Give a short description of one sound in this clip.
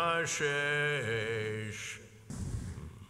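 An elderly man chants in a sustained singing voice through a microphone, in a reverberant hall.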